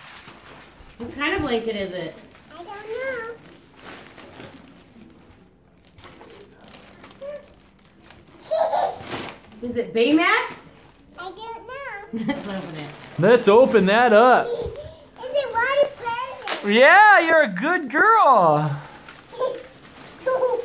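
A toddler girl babbles and squeals excitedly close by.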